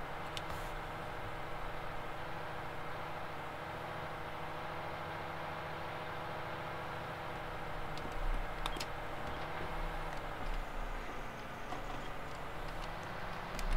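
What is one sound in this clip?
A tractor engine hums steadily from inside the cab.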